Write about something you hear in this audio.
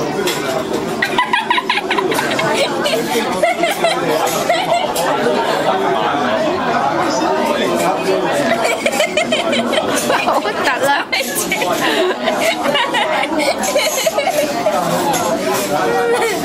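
A young boy laughs loudly close by.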